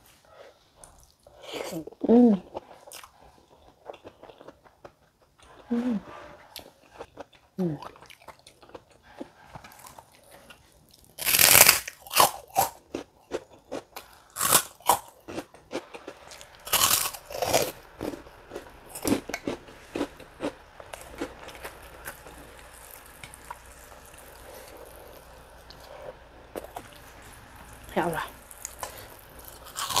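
A young woman chews food noisily close to a microphone.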